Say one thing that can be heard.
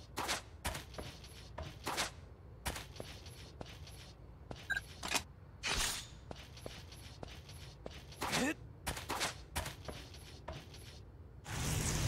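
Quick footsteps clatter on a hard floor.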